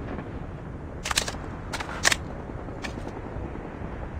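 A rifle is reloaded with sharp metallic clicks and clacks.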